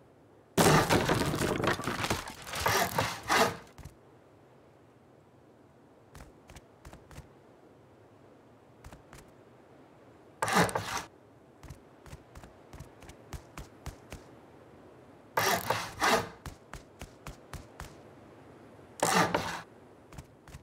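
Building blocks land in place with a loud crumbling whoosh.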